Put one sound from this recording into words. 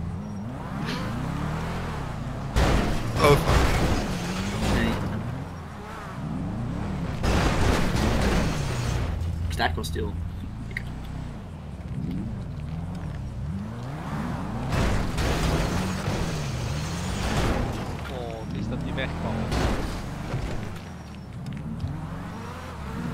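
A car engine revs up and down.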